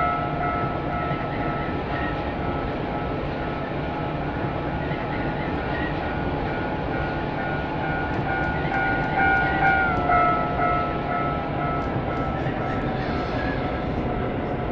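An electric train motor whines steadily, dipping slightly in pitch partway through.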